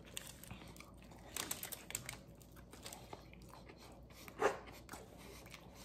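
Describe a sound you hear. A man chews and crunches food with his mouth close by.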